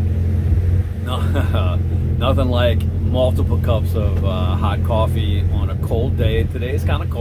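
A middle-aged man talks calmly and close up, outdoors.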